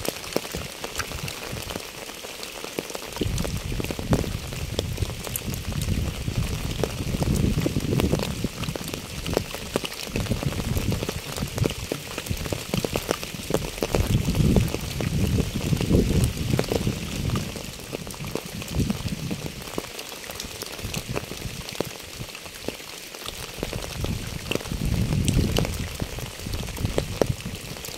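Light rain patters steadily on wet pavement and puddles.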